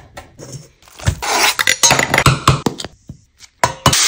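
A spice shaker rattles over a metal bowl.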